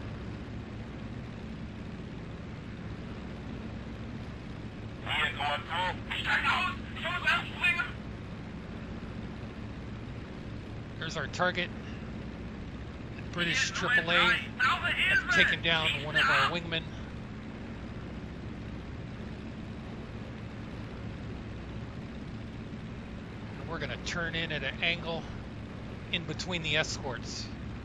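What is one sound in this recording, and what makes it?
A piston aircraft engine drones steadily.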